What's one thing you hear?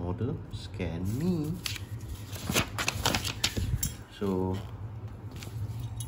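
Paper rustles as a booklet is handled and its pages are turned.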